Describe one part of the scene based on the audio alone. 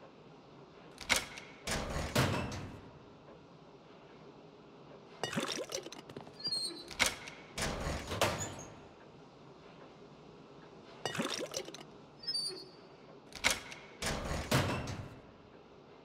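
A metal locker door swings open with a clank, over and over.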